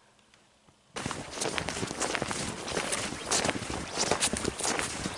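Boots crunch through deep snow.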